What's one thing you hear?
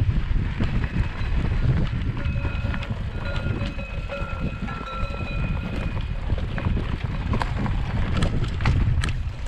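Wind rumbles steadily over the recorder.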